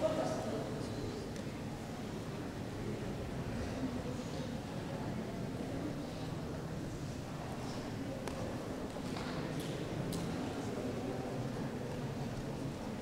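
An audience murmurs softly in a large echoing hall.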